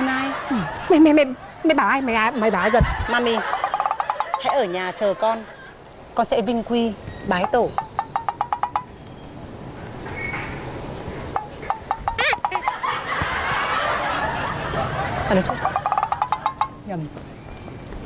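A young woman speaks quickly close by.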